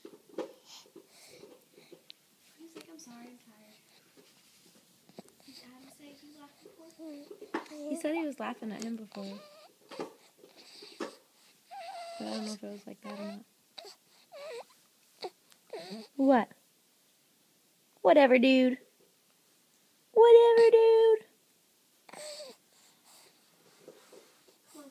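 A baby coos and babbles up close, with a few loud high squeals.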